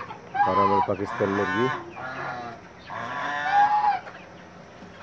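Chickens cluck and squawk.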